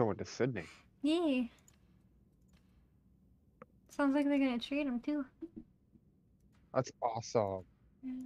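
A young woman talks with animation into a close microphone, her voice rising and falling in pitch.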